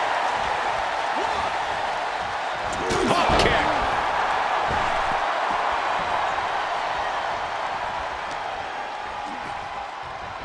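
A large crowd roars and cheers steadily in a big arena.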